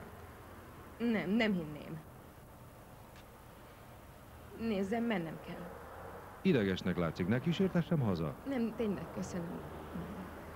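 A woman speaks with tension nearby.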